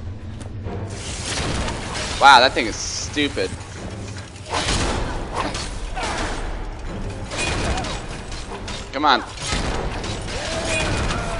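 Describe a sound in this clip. A sword clangs against metal in a fight.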